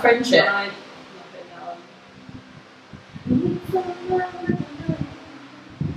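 A young woman talks casually and cheerfully nearby.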